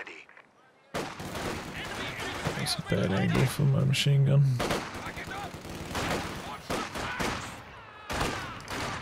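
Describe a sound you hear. Explosions boom and rumble amid gunfire.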